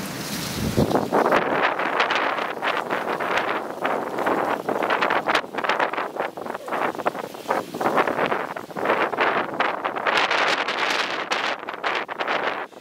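A mute swan rummages through dry fallen leaves with its bill.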